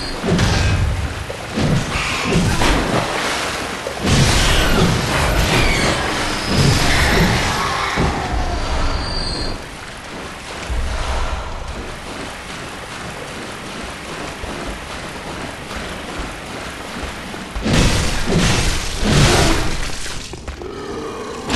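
Blades slash and strike flesh with heavy, wet impacts.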